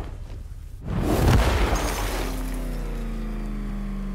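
A heavy body slams onto the ground with a thud.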